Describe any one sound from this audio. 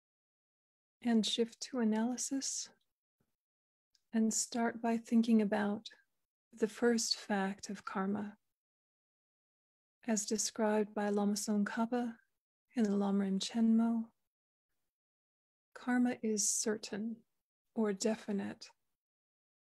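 A woman speaks calmly and slowly in short phrases over an online call.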